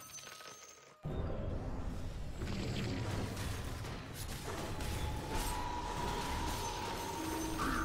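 Game combat sounds clash and crackle.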